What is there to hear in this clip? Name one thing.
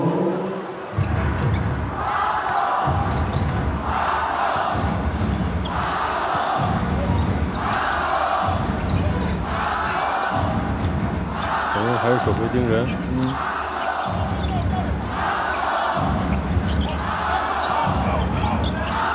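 A large crowd chants in a steady rhythm in an echoing arena.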